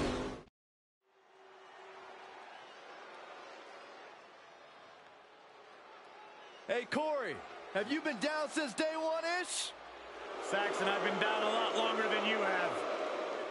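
A large crowd cheers in a big echoing arena.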